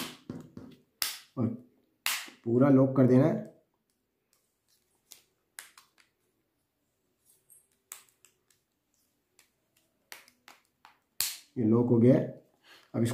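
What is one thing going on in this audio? A plastic phone case clicks and snaps as fingers press it into place.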